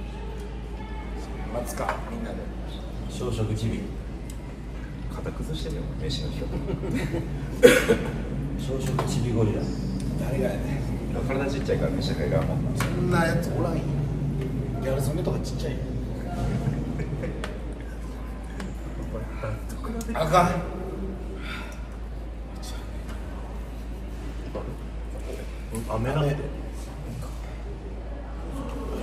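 Young men talk and laugh together close by.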